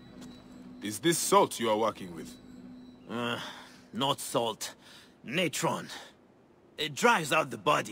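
A man speaks calmly and slowly.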